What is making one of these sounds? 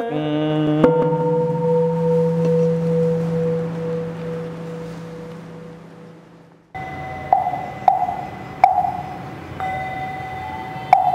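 A man chants in a steady, drawn-out voice.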